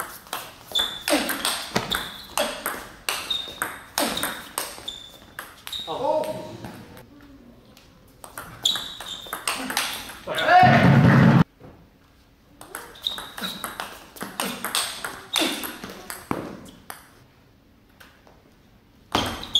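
A table tennis ball clicks sharply back and forth off paddles and the table in an echoing hall.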